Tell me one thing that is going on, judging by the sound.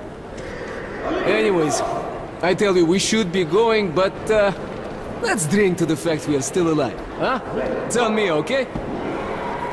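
A man speaks casually and cheerfully, close by.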